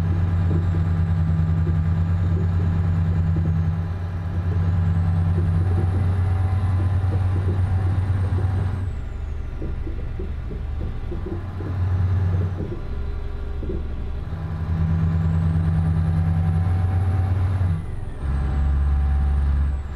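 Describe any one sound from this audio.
Tyres rumble and rattle over a rough, bumpy road.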